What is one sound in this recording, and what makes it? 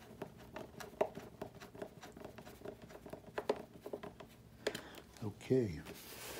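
Small plastic parts click and tap against each other close by.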